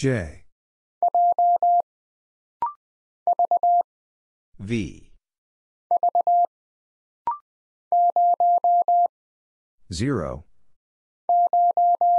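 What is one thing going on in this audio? Morse code beeps sound in quick bursts of short and long tones.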